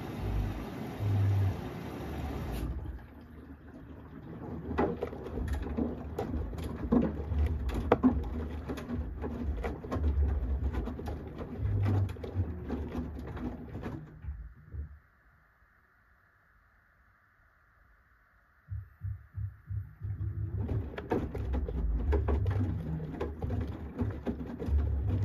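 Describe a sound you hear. A washing machine drum turns, with laundry tumbling and thumping inside, then stops briefly and starts again.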